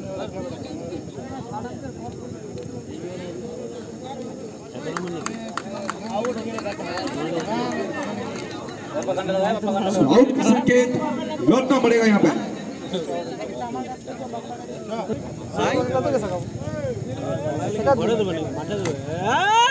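A man's voice comments with animation through a loudspeaker.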